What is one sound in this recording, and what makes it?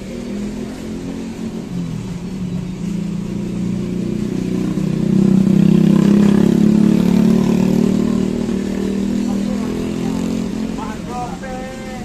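A motorbike engine rumbles past nearby, growing louder and then fading.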